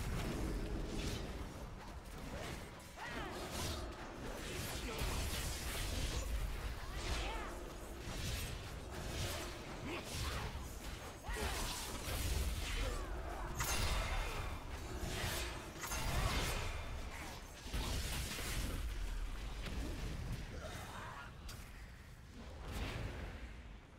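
Game weapons strike repeatedly with sharp hits.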